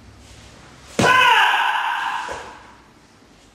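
A man lets out a sharp, loud shout close by.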